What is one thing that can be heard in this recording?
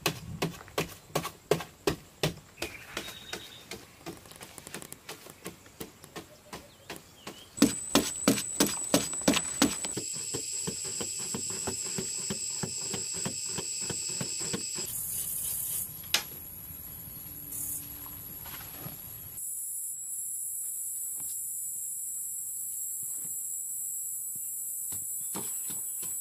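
A hoe chops and scrapes into dry soil.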